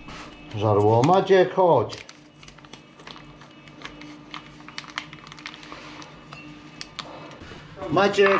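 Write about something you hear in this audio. A spoon clinks against a bowl as it stirs.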